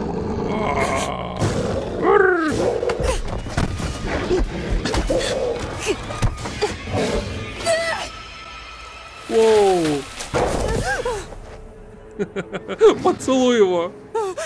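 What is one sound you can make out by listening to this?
A creature snarls and shrieks.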